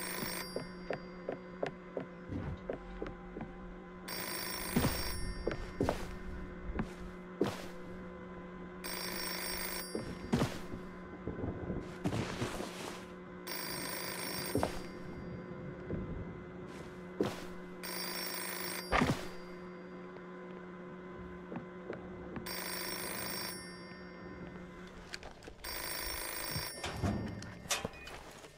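Footsteps knock on creaky wooden floorboards.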